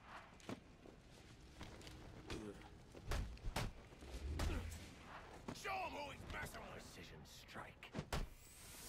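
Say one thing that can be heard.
Punches and kicks land with heavy thuds in a brawl.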